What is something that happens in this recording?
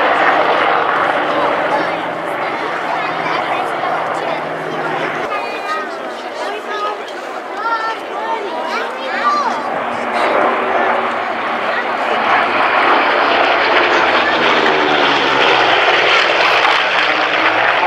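Propeller planes drone overhead, their engines growing to a loud roar as they pass.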